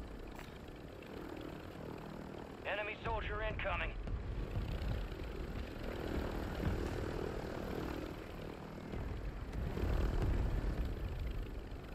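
A helicopter's rotor thumps and roars steadily.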